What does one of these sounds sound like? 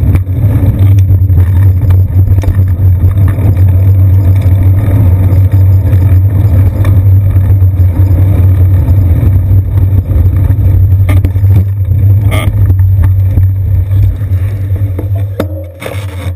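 Wind rushes loudly over a microphone.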